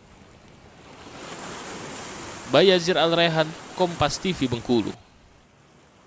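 Waves crash and roll onto the shore.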